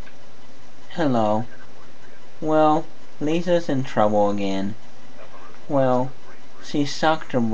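A man talks close to a microphone in short bursts.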